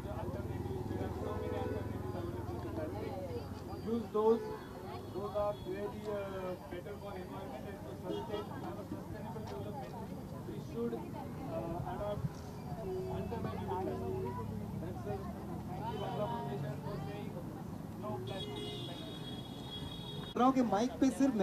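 A man speaks through a microphone to a crowd outdoors.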